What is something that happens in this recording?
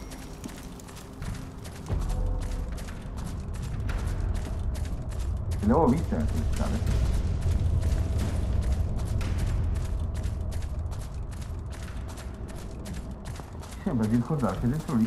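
Heavy armoured footsteps clank steadily on stone.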